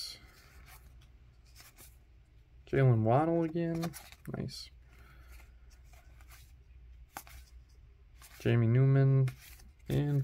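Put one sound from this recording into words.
Trading cards slide and flick against each other.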